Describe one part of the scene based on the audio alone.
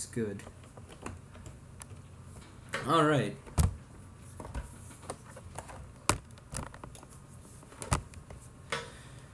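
Hands tap and knock on a hard plastic surface.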